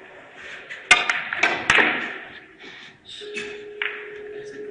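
Billiard balls clack against each other.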